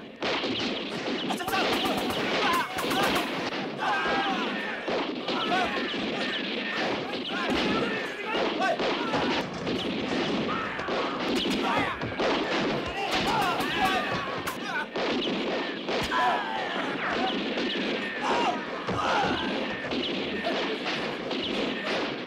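Men shout and yell in the fighting.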